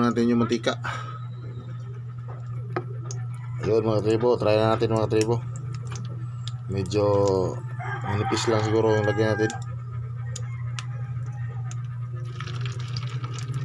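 A spoon scrapes and clinks against a ceramic bowl.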